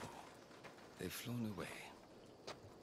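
A man speaks quietly with surprise.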